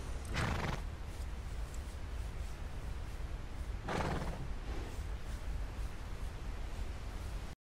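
A horse's hooves thud slowly on a dirt path.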